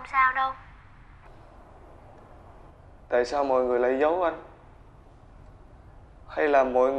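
A young man speaks close by in a pleading, emotional voice.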